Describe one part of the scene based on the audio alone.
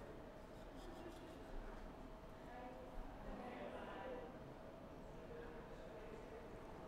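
A toothbrush scrubs softly against teeth.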